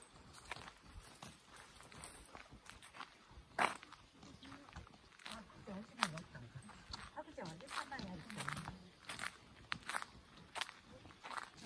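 Footsteps crunch steadily on a gravel path outdoors.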